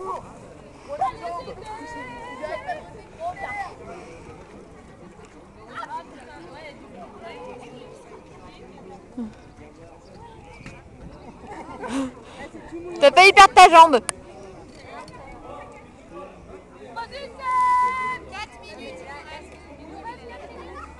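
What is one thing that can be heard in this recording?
Young people chat and call out nearby outdoors.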